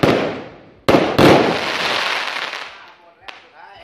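Fireworks crackle and sizzle in a dense shower.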